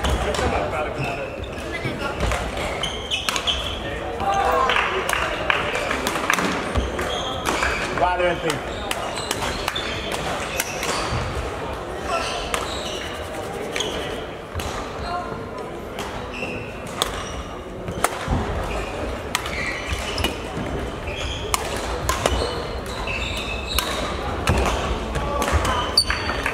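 The space echoes like a large sports hall.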